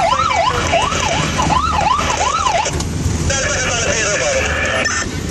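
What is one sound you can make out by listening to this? A siren wails rapidly up and down close by.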